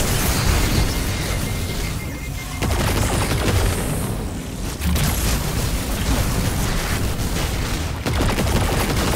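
A weapon fires in automatic bursts.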